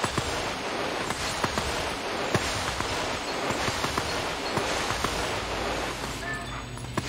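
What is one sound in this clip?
A wolf's paws patter and rustle quickly through grass.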